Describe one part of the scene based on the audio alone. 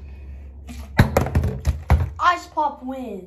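A plastic bottle thuds down on a countertop.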